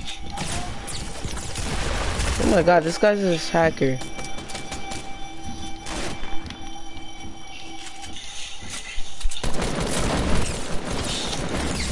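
Rapid gunshots crack repeatedly.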